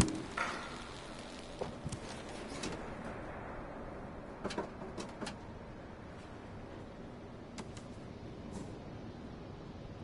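A cat's paws patter across a tin roof.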